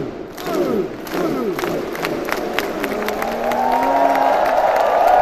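Fans clap their hands in a quick rhythm.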